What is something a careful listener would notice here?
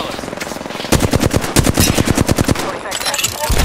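An automatic rifle in a video game fires a rapid burst.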